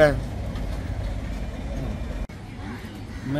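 A middle-aged man speaks into a microphone outdoors.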